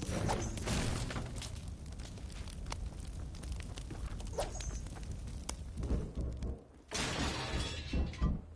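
Wooden walls are built with quick clattering thuds.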